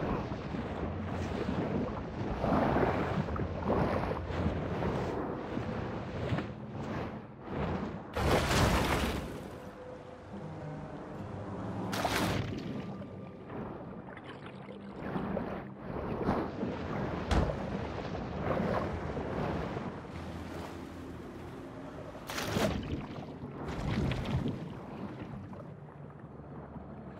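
Water rushes in a muffled way around a shark swimming underwater.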